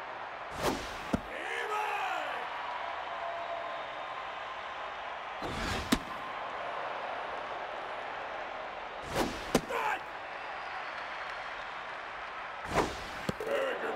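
A baseball smacks into a catcher's mitt with a sharp pop.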